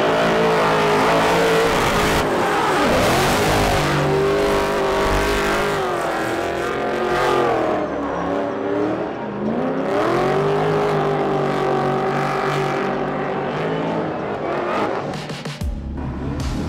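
Tyres screech on the tarmac.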